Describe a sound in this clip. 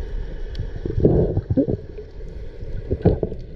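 Air bubbles burble from a diver's breathing.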